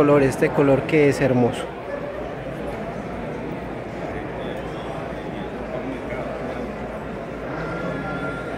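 A crowd murmurs and chatters in a large, busy hall.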